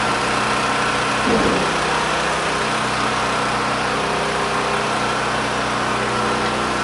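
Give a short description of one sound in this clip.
A forklift engine hums steadily nearby.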